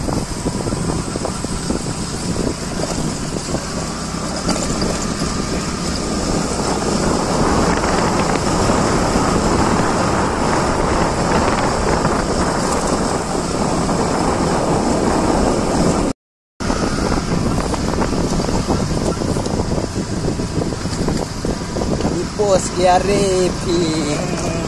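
A scooter engine hums steadily as it rides along.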